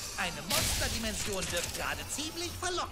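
Debris clatters after an explosion.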